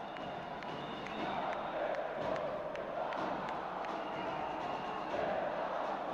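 A crowd of spectators cheers and chatters in a large echoing hall.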